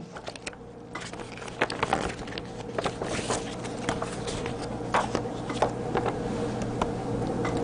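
Sheets of paper rustle and crinkle close by.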